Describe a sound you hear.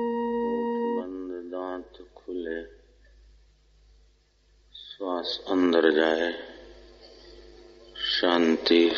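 An elderly man speaks slowly and calmly.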